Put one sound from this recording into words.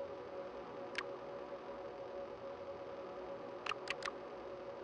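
Short electronic menu clicks sound a few times.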